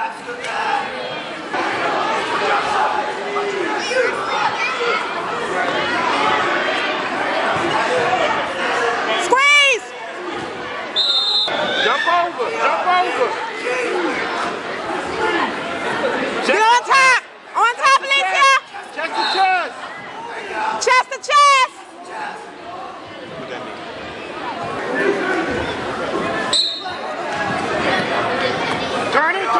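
A crowd of spectators chatters throughout in a large echoing gym.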